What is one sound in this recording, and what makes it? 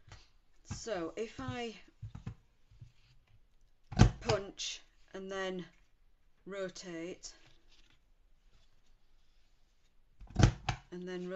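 Paper rustles and slides across a table.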